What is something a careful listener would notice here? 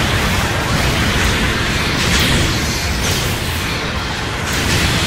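Heavy mechanical thrusters roar steadily.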